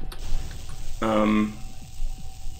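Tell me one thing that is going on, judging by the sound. A portal gun in a game fires with a short buzzing electronic zap.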